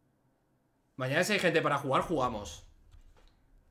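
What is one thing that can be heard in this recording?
A man speaks briefly and with animation, close to a headset microphone.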